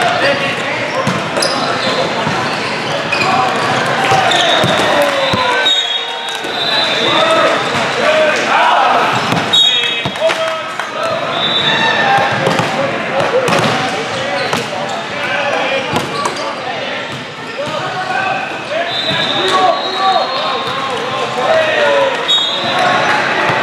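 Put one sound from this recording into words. A volleyball thuds sharply when hit.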